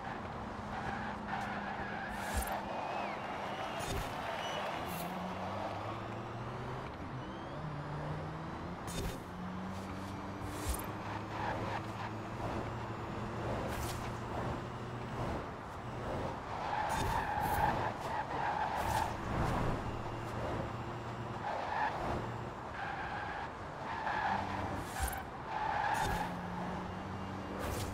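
A racing car engine roars at high speed, shifting gears as it accelerates.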